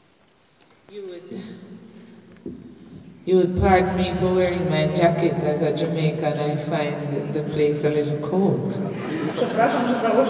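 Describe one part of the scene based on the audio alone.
A woman sings solo through a microphone in a large echoing hall.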